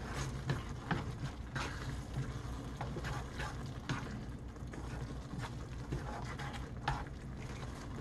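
Chopsticks scrape and clink against a pan.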